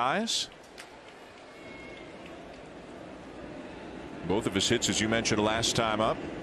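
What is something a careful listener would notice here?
A crowd murmurs in a large stadium.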